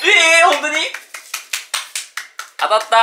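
A young man claps his hands rapidly.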